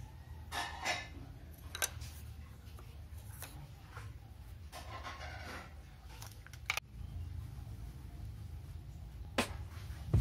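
A pencil scratches lightly on wood.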